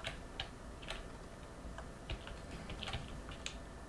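A wooden wardrobe door swings open with a thump.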